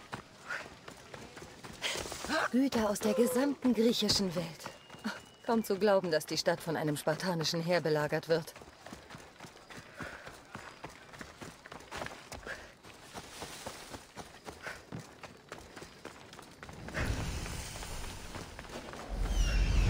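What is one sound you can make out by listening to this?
Footsteps run over gravel and stone.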